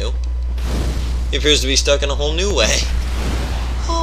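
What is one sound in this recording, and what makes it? A fireball whooshes through the air and bursts.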